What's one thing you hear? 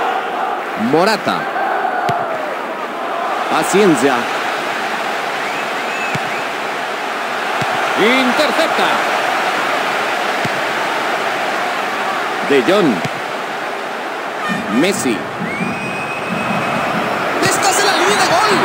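A football is kicked with dull thuds now and then.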